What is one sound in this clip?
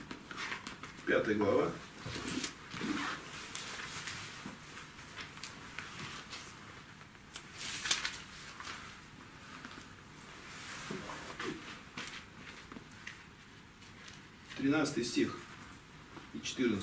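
A man speaks briefly and haltingly through a microphone.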